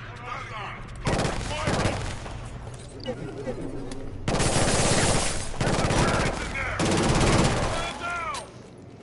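Automatic rifle fire rattles in bursts.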